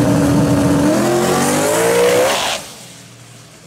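A turbocharged V8 drag car launches at full throttle, its engine pitch climbing.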